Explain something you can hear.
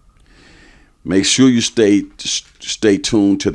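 A man speaks clearly and with animation into a close microphone.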